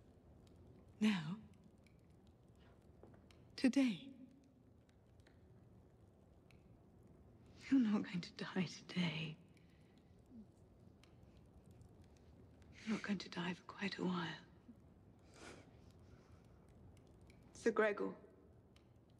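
A woman speaks softly and slowly, close by, with long pauses.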